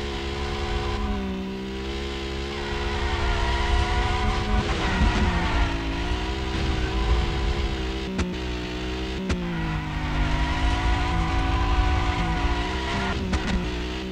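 Tyres screech on tarmac as a car drifts.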